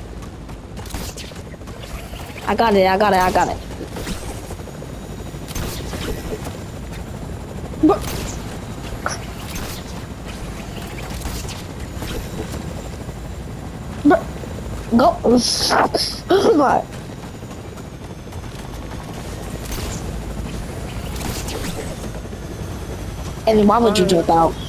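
A helicopter's rotor whirs and thrums steadily nearby.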